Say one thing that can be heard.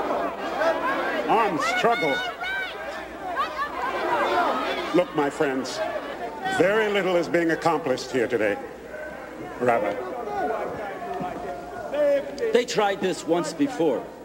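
A man speaks forcefully through a microphone.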